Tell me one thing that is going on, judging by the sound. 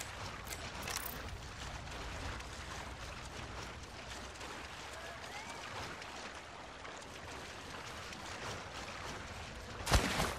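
Small waves wash gently onto a beach.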